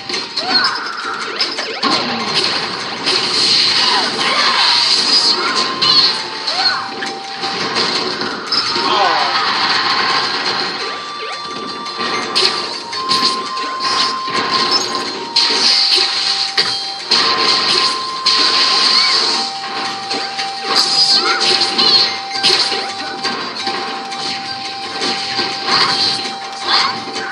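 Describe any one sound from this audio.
Video game fighting sounds play through a television speaker.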